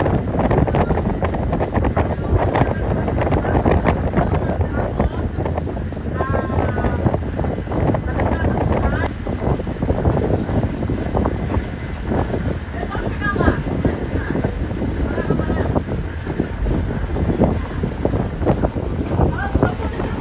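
Wind buffets loudly outdoors over open water.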